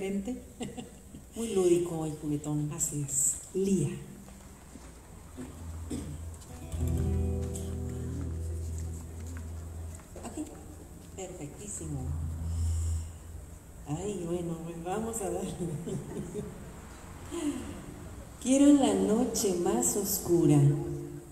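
A young woman sings through a microphone.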